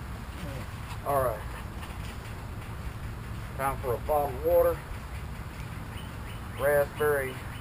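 Small dogs yelp and whine close by.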